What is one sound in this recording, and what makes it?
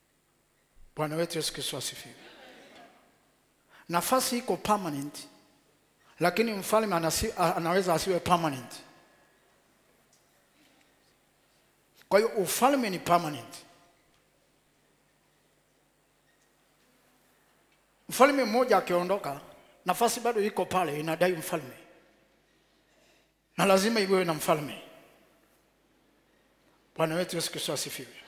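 A man preaches forcefully through a headset microphone in bursts, with pauses between them, and his voice echoes in a large hall.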